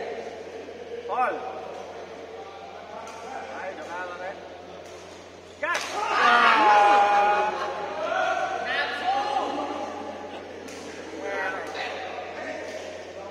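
Shuttlecocks pop off badminton rackets in a large echoing hall.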